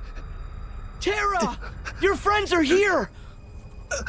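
A young woman calls out urgently.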